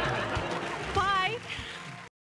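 A woman exclaims excitedly, close by.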